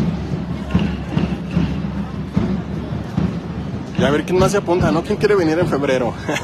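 A crowd chatters and murmurs outdoors.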